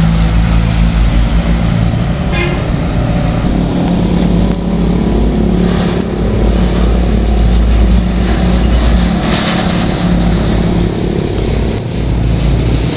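Heavy truck engines rumble steadily nearby.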